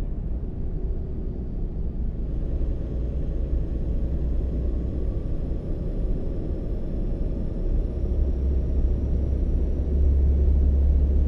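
A truck engine rumbles steadily and grows louder toward the end.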